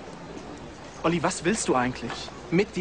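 A second young man asks a question nearby.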